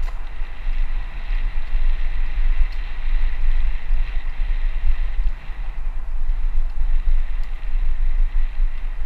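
Wind buffets a microphone, a low, steady rumble.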